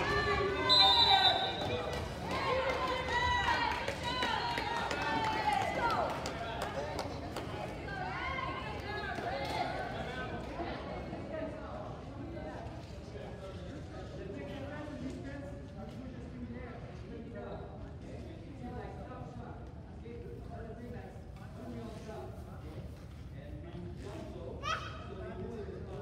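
A crowd of people chatters in a large echoing gym.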